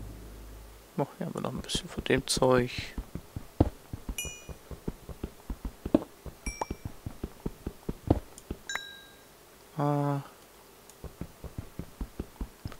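A pickaxe taps rapidly against stone blocks.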